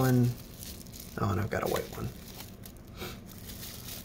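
Bubble wrap crinkles as it is handled.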